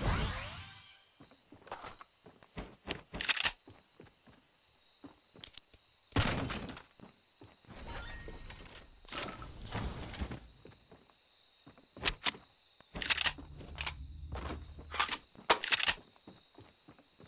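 Short game sound effects click and thump in bursts.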